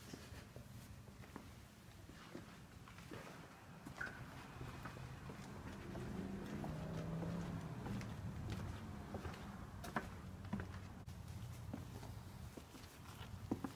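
Footsteps tap on a hard floor and paving stones.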